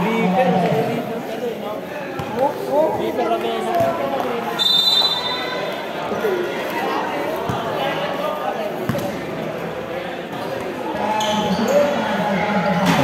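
Young men shout and call out across an outdoor court.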